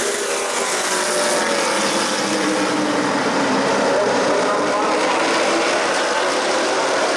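Race car engines roar loudly as a pack of cars speeds around the track.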